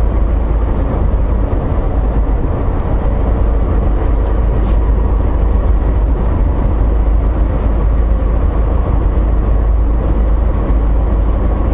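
Tyres rumble steadily on the road.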